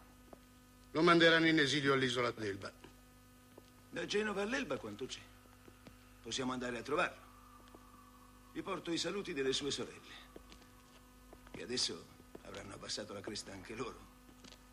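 Two men talk calmly in low voices.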